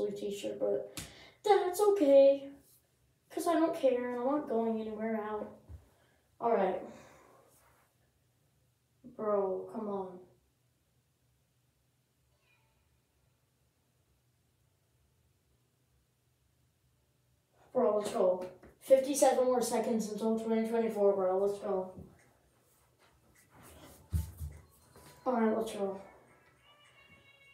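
A boy talks with animation close by, in a small echoing room.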